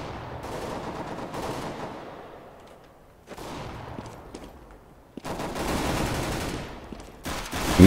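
Footsteps tread steadily on a hard stone floor.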